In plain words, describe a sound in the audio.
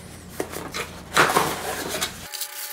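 A cardboard box flap scrapes and pops open.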